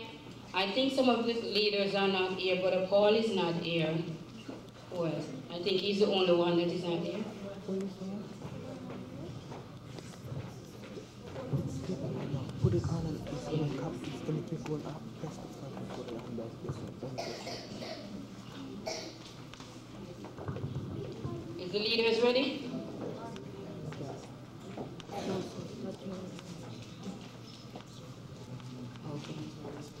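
A woman speaks with animation into a microphone, heard through loudspeakers in an echoing hall.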